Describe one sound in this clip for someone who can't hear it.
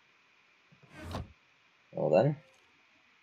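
A heavy chest shuts with a dull thud.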